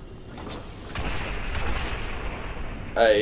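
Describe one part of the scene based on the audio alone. A heavy metal door rumbles open.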